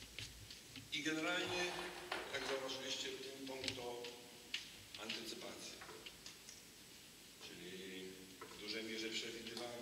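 A man talks calmly nearby in an echoing hall.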